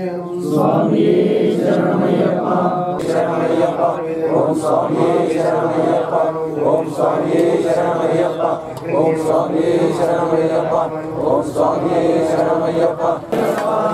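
Men chant a devotional song in steady, melodic voices.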